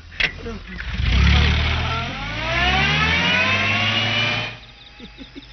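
A car engine revs loudly and then cuts off.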